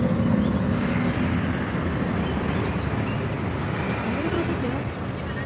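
A car rolls slowly along a paved road, heard from inside.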